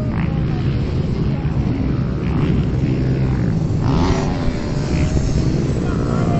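A woman speaks at a distance, half buried by the wind.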